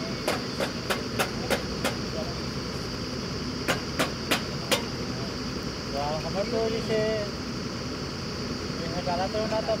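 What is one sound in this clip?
A diesel engine on a drilling rig runs with a steady low rumble.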